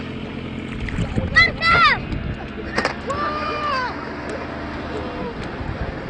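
Floodwater splashes and churns around a sunken car.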